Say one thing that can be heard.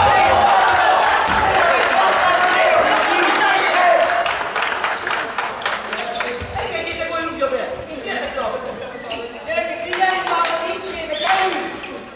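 Young men shout to each other in a large echoing hall.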